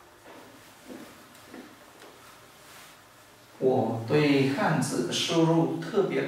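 A cloth eraser rubs across a whiteboard.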